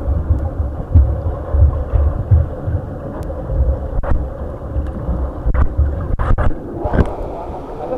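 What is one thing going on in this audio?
Muffled underwater water sounds churn and bubble as a swimmer strokes.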